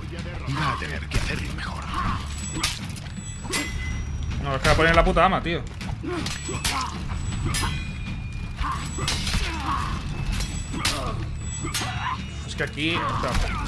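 Swords clash and ring sharply.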